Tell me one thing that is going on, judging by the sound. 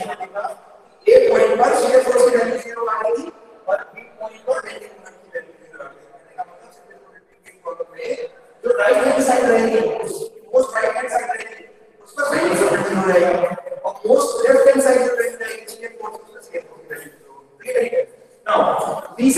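A young man explains in a lively voice, close up.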